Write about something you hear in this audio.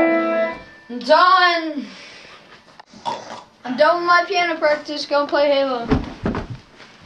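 A boy sings loud, sliding notes close by.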